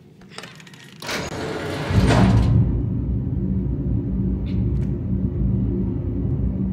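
A heavy machine bursts into a hiss and then a loud, steady low hum.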